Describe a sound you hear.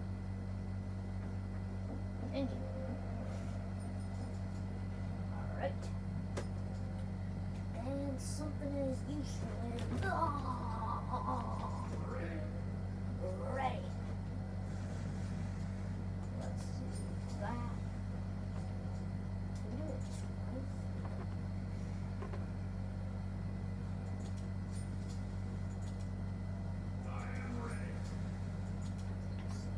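Video game sounds play from a television.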